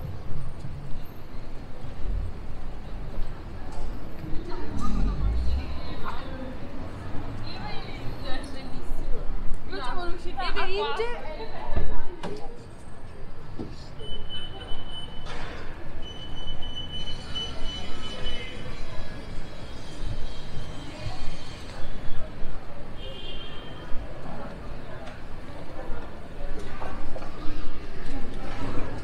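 A busy city street hums with distant traffic outdoors.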